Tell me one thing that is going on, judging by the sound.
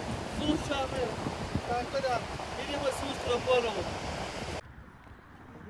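Waves wash onto a beach nearby.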